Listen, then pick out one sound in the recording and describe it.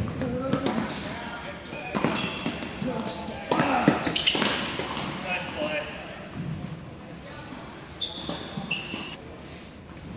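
Tennis shoes squeak on a hard court.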